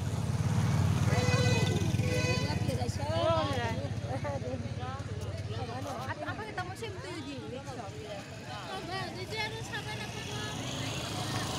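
Young men call out and talk loudly nearby.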